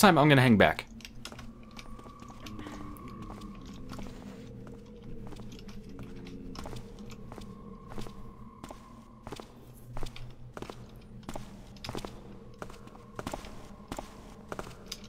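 Footsteps tap on stone at an even pace.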